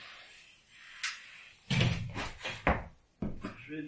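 A metal lift clanks and rattles as it is adjusted.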